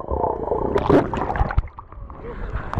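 Water churns and bubbles, heard muffled from underwater.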